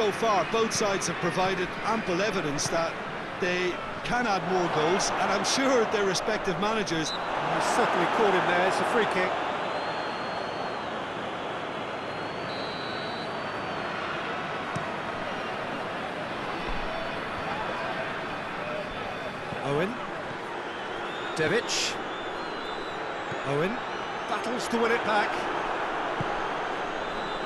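A large crowd roars and murmurs steadily in a big open stadium.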